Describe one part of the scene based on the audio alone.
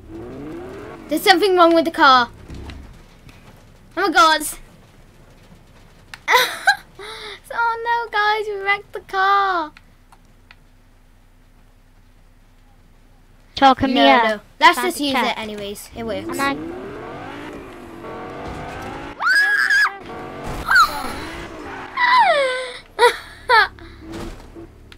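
A young girl talks with animation close to a headset microphone.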